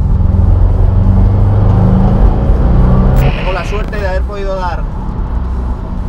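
A car engine roars loudly, revving hard.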